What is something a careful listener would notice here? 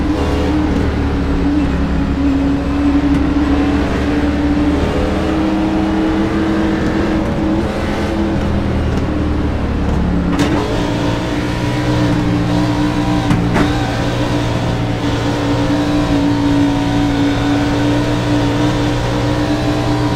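Other race cars' engines drone close by.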